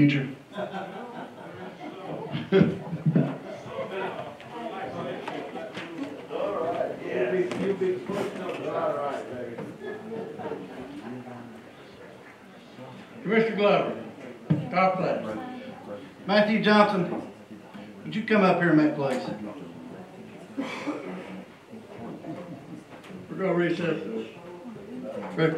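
A man speaks steadily through a microphone and loudspeakers in a large room.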